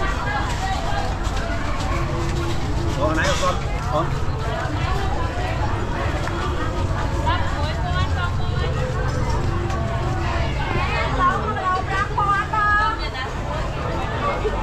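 A busy crowd of men and women chatters all around, outdoors.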